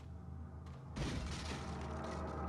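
A wooden crate smashes apart with a loud crack.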